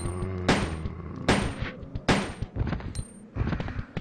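Gunshots ring out several times, loud and echoing.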